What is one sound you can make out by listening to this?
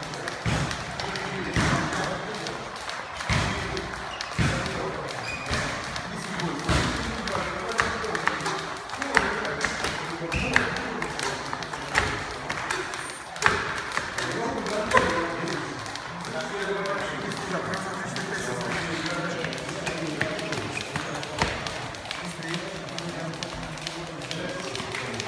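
Sneakers thud and squeak on a hard floor as boxers shuffle and skip.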